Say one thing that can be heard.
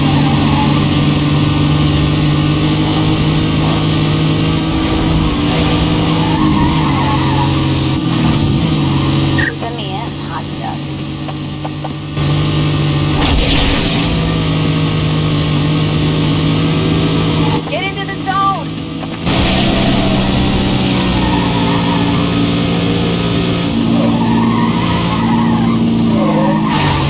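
A car engine roars steadily at high speed, its pitch shifting as the gears change.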